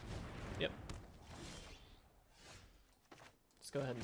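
A video game plays short whooshing sound effects as cards move.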